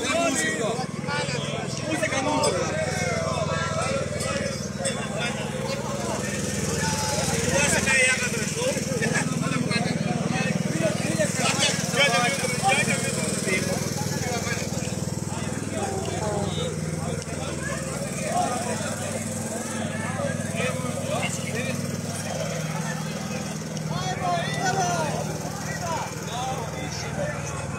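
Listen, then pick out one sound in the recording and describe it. A crowd of men and women talk and call out nearby outdoors.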